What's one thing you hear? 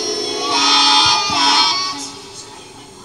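A group of children sing together through a microphone.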